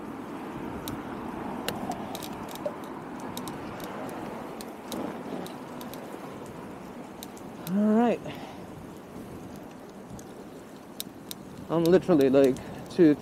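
Bicycle tyres roll steadily over pavement.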